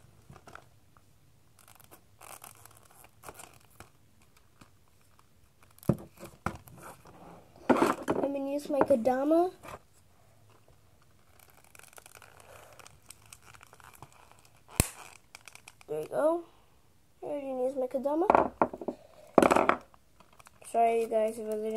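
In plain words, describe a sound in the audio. Plastic packaging crinkles and rustles in a boy's hands.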